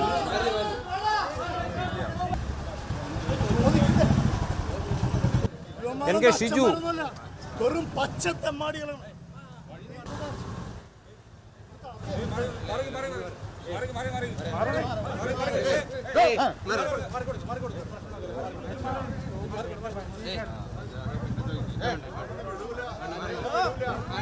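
Several men shout and argue loudly close by.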